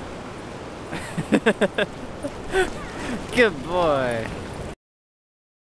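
A dog yelps and barks excitedly close by.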